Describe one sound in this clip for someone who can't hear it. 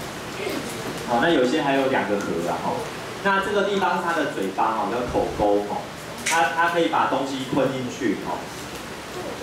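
A young man speaks calmly through a microphone in a slightly echoing room.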